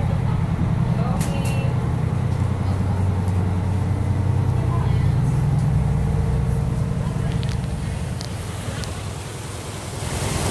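A boat engine rumbles low and steadily.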